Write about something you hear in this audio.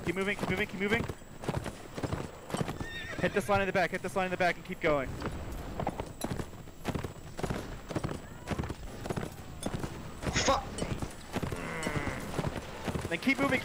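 Horse hooves pound steadily at a gallop.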